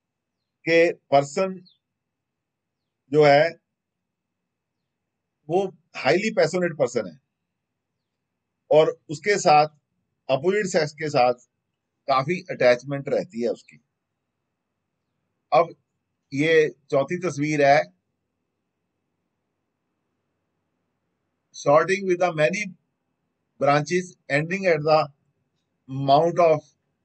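A middle-aged man talks calmly into a close microphone, in short phrases with pauses.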